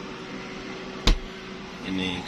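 A small fridge door thuds shut.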